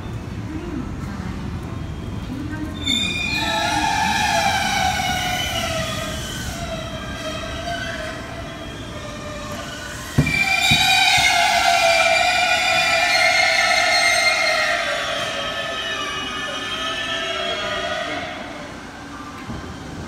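A train rumbles into an echoing station.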